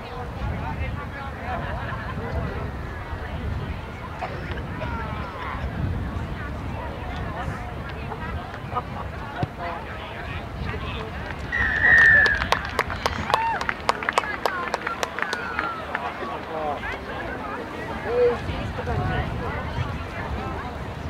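Players shout to one another across the field.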